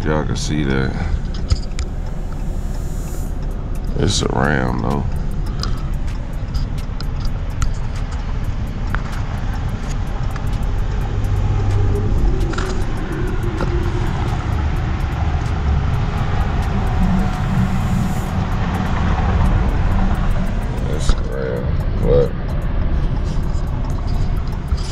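A car engine hums and tyres rumble steadily on the road.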